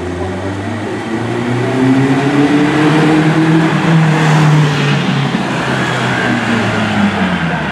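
A classic car drives past, its engine rumbling.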